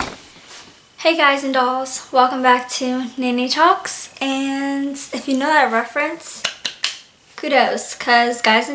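A girl speaks cheerfully and close up.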